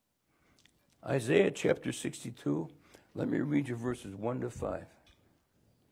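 An older man speaks calmly into a microphone, with long pauses.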